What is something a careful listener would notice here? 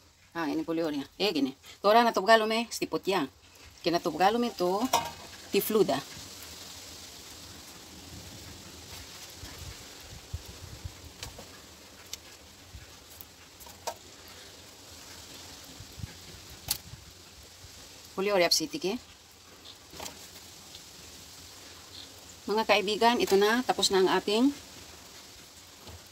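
Charcoal crackles softly under a grill.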